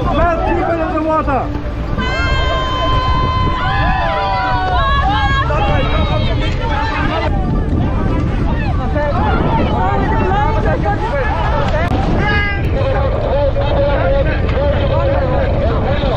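A crowd of men shout and cry out in panic nearby.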